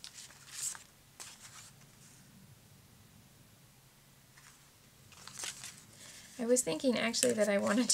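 Paper sheets rustle and crinkle softly.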